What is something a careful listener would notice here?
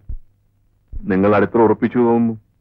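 A man speaks in a deep, calm voice.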